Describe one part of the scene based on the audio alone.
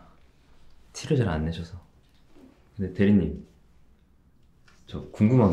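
A young man speaks calmly and softly up close.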